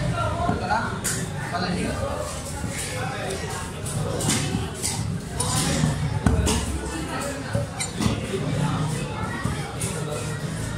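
A cleaver chops into a fish on a wooden block with sharp thuds.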